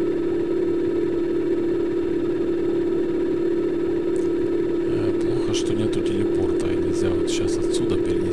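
A vehicle's motor hums at a steady pitch.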